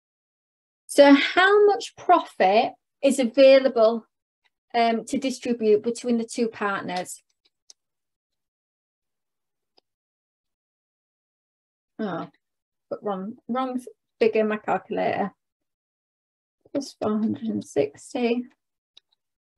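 A young woman explains calmly through a microphone on an online class.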